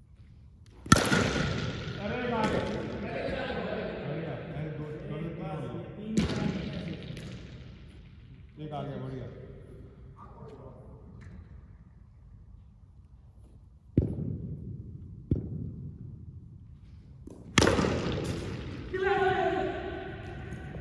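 Men shout and call out across a large echoing hall.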